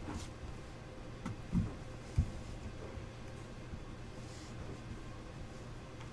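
A cardboard lid slides off a box.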